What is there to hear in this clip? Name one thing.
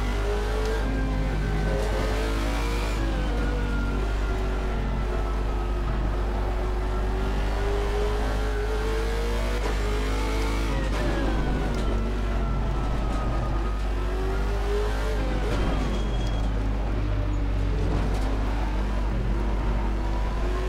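A race car engine roars, its pitch rising and falling as the gears shift.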